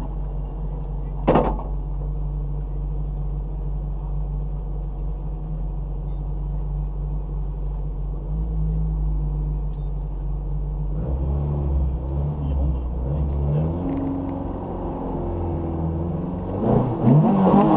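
A rally car engine idles with a deep, steady rumble.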